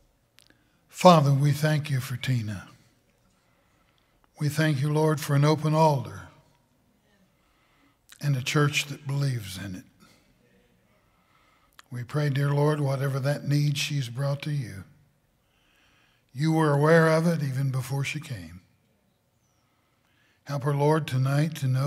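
An older man speaks calmly and slowly through a microphone, in short phrases with pauses.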